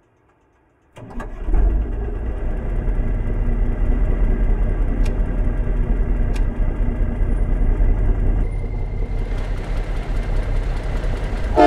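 A diesel semi truck engine idles.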